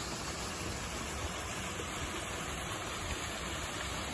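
A small waterfall splashes into a rocky pool.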